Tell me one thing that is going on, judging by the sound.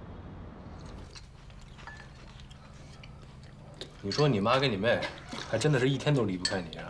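Cutlery clinks against bowls and plates.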